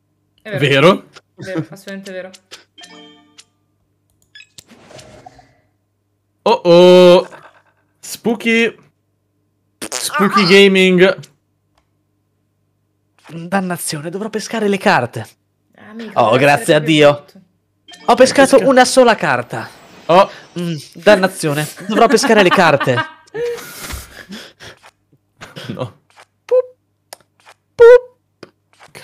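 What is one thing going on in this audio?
Young men talk and joke with animation over an online call.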